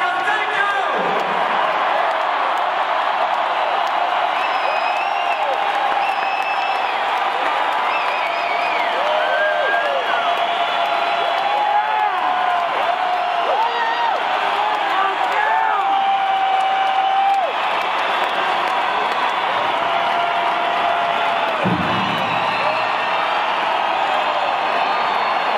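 Shrill whistles ring out from the crowd.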